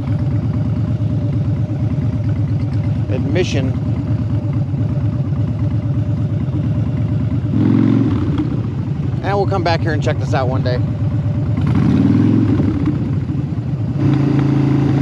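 A motorcycle engine rumbles up close, idling and pulling away slowly.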